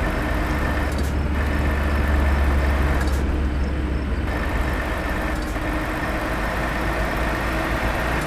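A truck engine hums steadily as it drives along a road.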